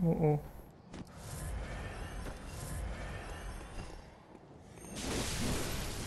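Weapons clash and slash in a fight.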